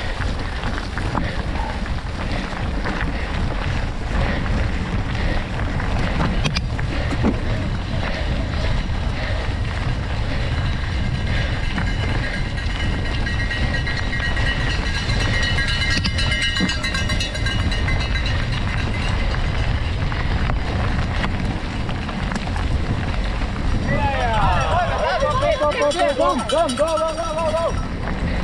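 Wind rushes past steadily, as if outdoors in motion.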